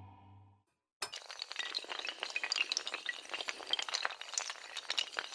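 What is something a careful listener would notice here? Dominoes clatter rapidly as they topple one after another.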